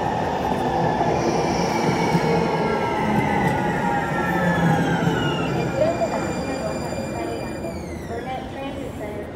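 An electric tram rumbles and whines past close by, its whine sliding lower as it moves off.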